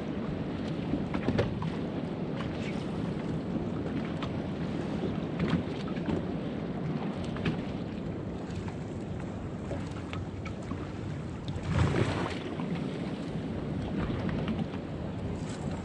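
A boat's engine rumbles low and steady.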